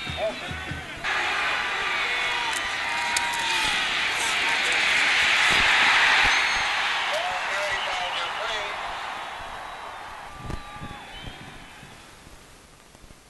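A large stadium crowd roars, swelling to a peak and then slowly fading.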